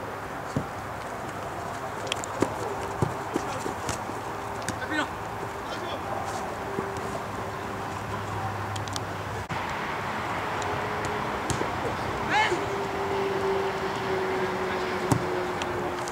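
A ball is kicked with dull thuds outdoors.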